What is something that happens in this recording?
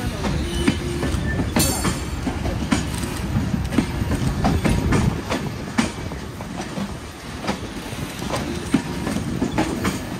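Train wheels clatter and clack over rail joints as carriages roll slowly past.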